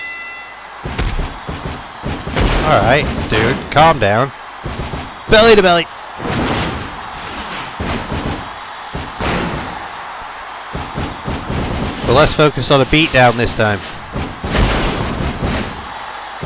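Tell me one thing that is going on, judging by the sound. Heavy thuds and slaps of bodies hitting a wrestling mat repeat.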